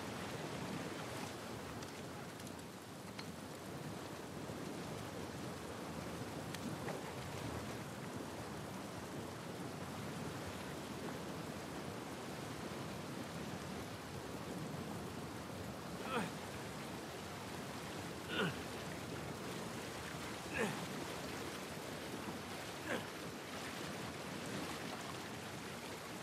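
A river rushes and splashes steadily nearby.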